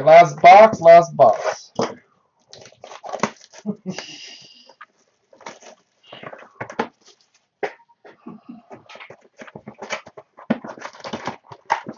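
Cardboard packaging rustles and taps as it is handled.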